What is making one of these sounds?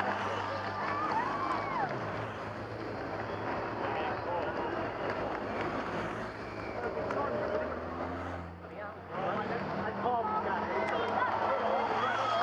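Motorcycles drive past.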